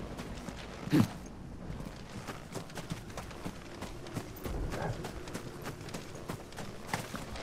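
Footsteps crunch steadily through grass and undergrowth.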